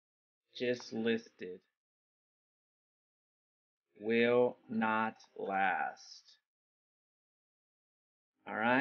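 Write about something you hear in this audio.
A young man speaks calmly and closely into a microphone, in short phrases with pauses.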